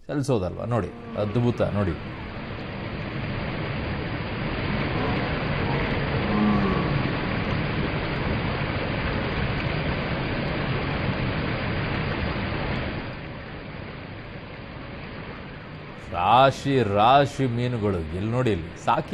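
Water rushes and splashes steadily over a spillway.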